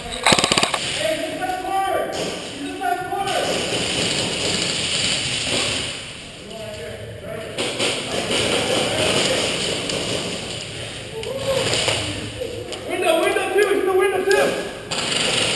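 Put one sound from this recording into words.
A man speaks in a muffled voice close by.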